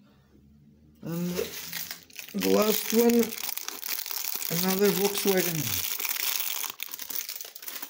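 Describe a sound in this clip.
A plastic wrapper crinkles and rustles as it is opened.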